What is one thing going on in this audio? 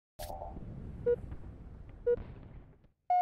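A game countdown beeps once a second.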